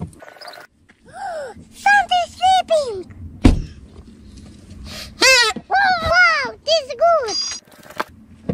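A young boy speaks with animation close to the microphone.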